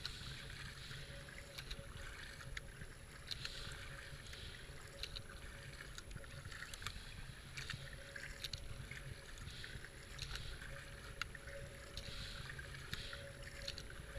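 A kayak paddle splashes and dips into water in a steady rhythm.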